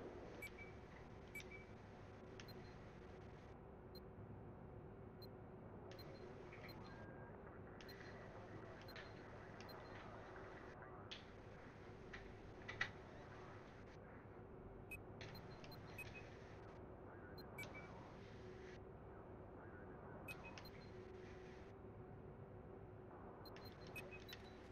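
Short soft menu clicks sound now and then.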